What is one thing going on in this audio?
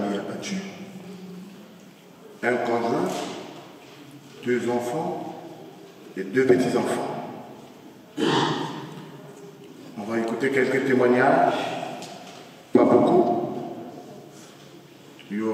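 A man speaks slowly and solemnly into a microphone in an echoing room.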